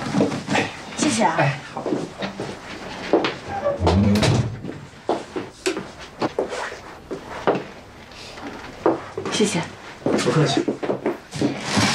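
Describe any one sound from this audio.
Cardboard boxes scrape and thump as they are moved.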